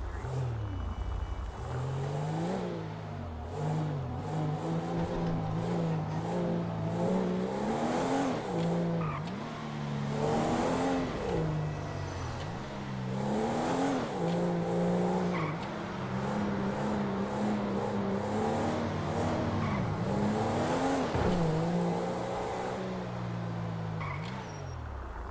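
A car engine revs hard and drops in pitch with each gear change.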